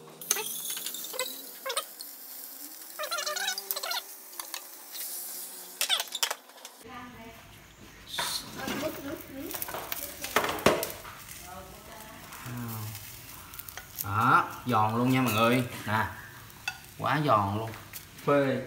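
Wooden chopsticks scrape and tap against a frying pan.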